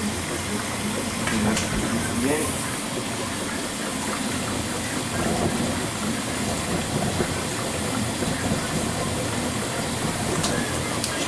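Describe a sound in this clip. Water and laundry slosh inside a washing machine drum.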